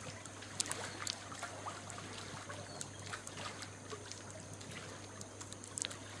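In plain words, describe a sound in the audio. Water ripples and laps gently against the edge of a pool.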